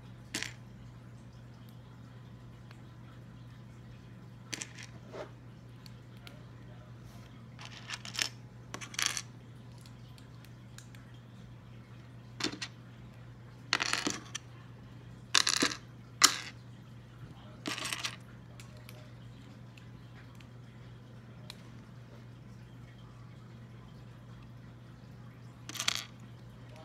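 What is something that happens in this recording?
Small plastic toy pieces click and rattle as they are handled up close.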